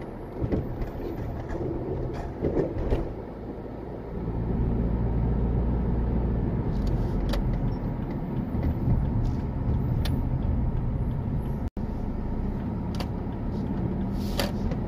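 A car engine hums steadily from inside as the car drives along a road.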